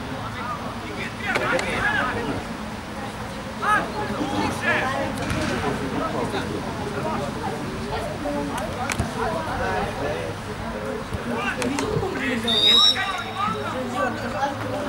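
Football players shout to each other across an open outdoor field.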